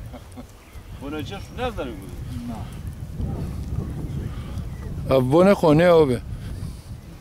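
An elderly man talks with animation nearby outdoors.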